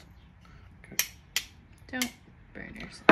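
Small plastic parts click in a man's hands.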